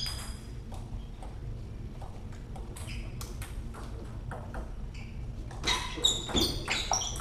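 A table tennis ball clicks back and forth off paddles and the table in a rally.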